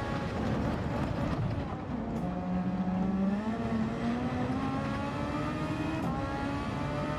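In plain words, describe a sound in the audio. A racing car engine drops in pitch as the car brakes hard, then climbs again.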